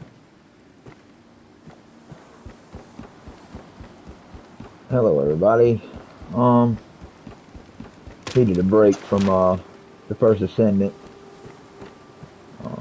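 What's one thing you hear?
Footsteps thud on wooden planks.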